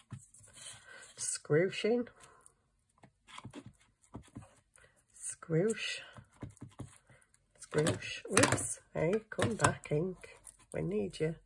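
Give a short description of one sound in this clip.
An ink pad dabs and rubs softly against paper.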